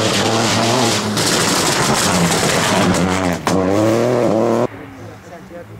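Gravel sprays and crunches under spinning tyres.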